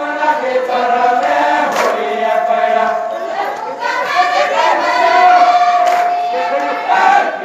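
A group of women sings together.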